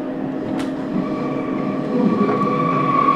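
Wheels squeal on the rails as the train rounds a curve.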